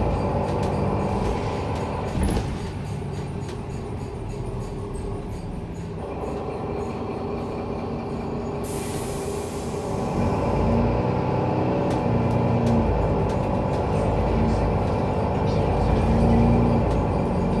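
A bus rattles and creaks as it rolls over the road.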